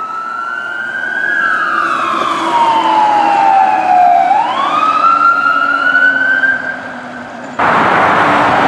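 A fire truck siren wails, sliding down and up in pitch.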